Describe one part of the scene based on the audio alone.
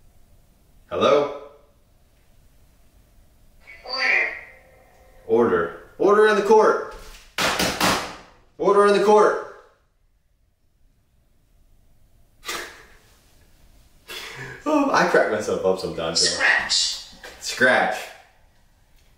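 A man talks with animation, close by, in an echoing empty room.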